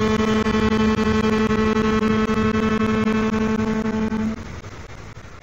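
An old radio gives off a loud, steady humming tone that suddenly stops.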